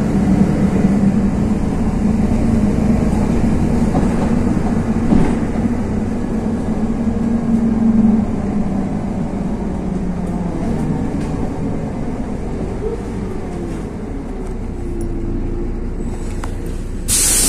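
A tram's motor hums, its pitch slowly falling as it slows.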